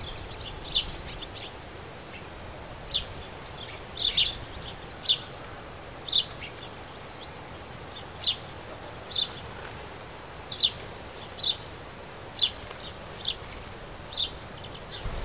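Sparrows chirp in short, sharp calls close by.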